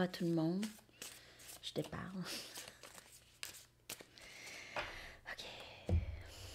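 Cards riffle and snap as a deck is shuffled.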